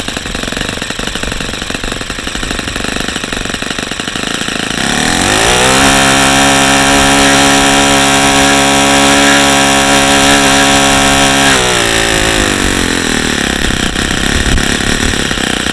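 A small model engine revs up to a steady high whine, holds it, then drops back down.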